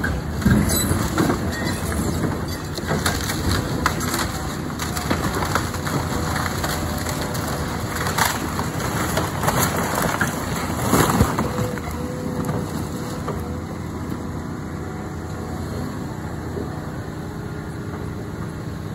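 A heavy excavator engine rumbles steadily nearby.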